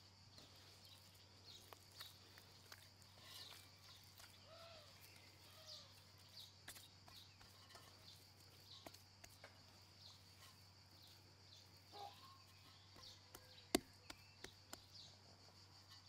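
Sticky dough squelches softly as hands knead it in a metal bowl.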